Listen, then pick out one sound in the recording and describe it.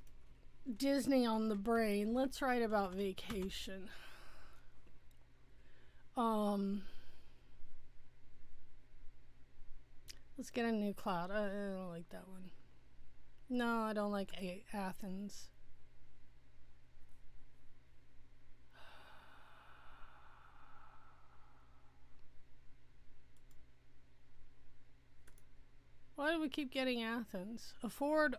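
A woman talks with animation into a close microphone, in short bursts with pauses.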